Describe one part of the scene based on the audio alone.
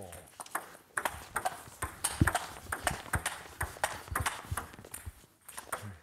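A ping-pong ball clicks quickly back and forth off paddles and a table.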